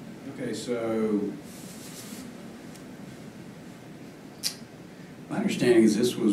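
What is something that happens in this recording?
A man speaks calmly through a microphone, in short phrases.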